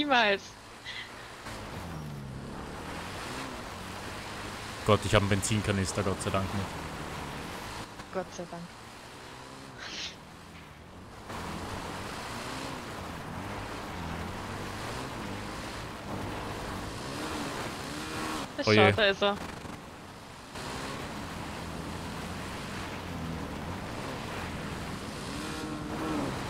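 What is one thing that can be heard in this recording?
A dirt bike engine revs up and down steadily.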